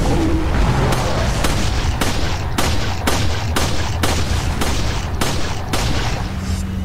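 A pistol fires repeated shots.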